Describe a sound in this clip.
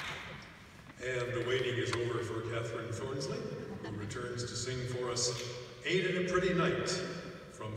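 A piano plays in a large, echoing hall.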